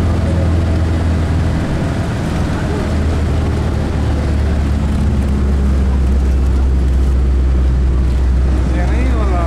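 A bus engine rumbles low and steady from inside the bus.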